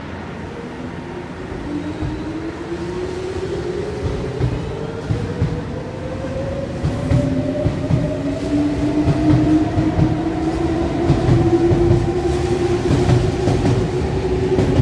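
A train pulls away with a rising electric whine.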